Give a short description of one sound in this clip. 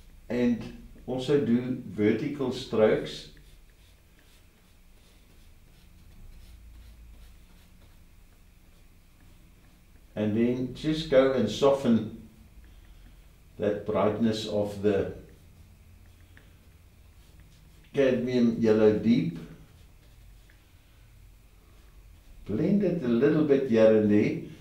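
An elderly man talks calmly, close by.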